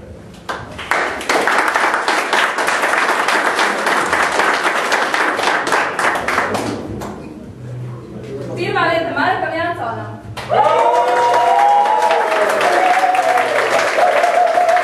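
A crowd of people applaud with clapping hands.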